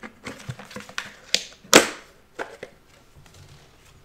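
A plastic tub lid pops off.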